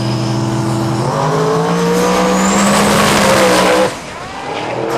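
A race car engine revs higher as the car speeds away.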